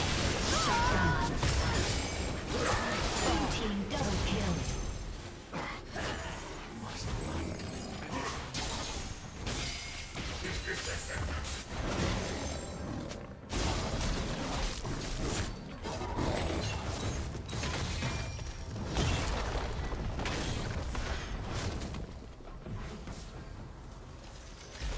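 Magic blasts and clashing weapons crackle and whoosh in a fast video game fight.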